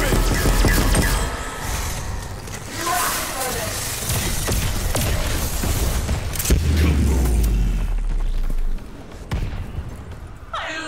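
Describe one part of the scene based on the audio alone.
A heavy energy gun fires in rapid bursts.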